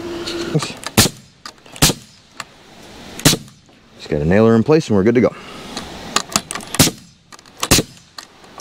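A nail gun fires sharp bangs into wood.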